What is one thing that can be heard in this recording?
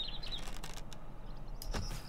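A wooden bow creaks as its string is drawn.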